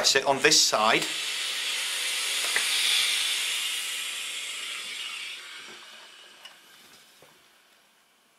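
A steam iron hisses loudly, then slowly fades.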